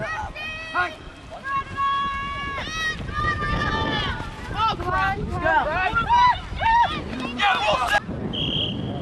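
Young men shout and call out loudly across an open field.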